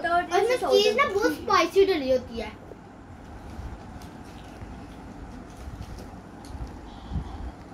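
Girls chew food with soft smacking sounds.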